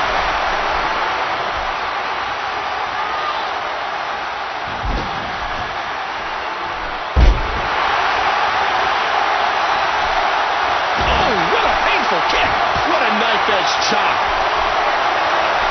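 Punches land with sharp smacks.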